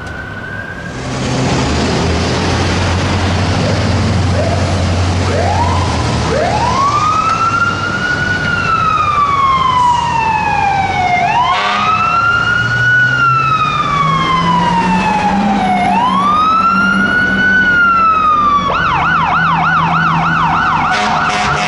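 A heavy truck engine rumbles loudly nearby.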